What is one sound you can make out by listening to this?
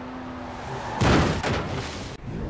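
A car crashes with a loud thud.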